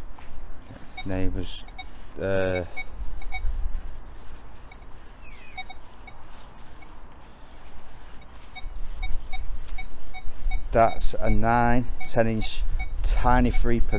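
A metal detector beeps in short warbling tones.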